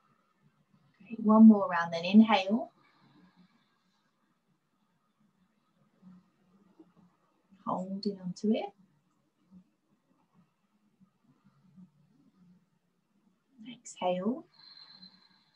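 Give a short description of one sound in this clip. A young woman speaks calmly and slowly into a microphone, with long pauses.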